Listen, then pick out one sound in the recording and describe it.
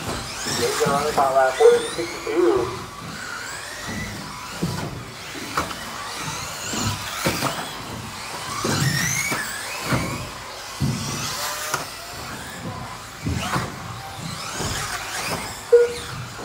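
Small electric model cars whine as they speed around a track.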